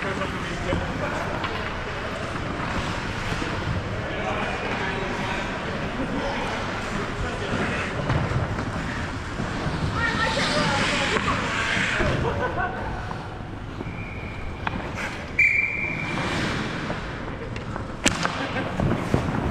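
Skate blades scrape and carve across the ice close by.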